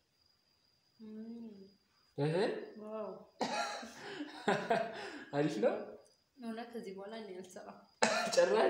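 A young woman speaks with animation close by.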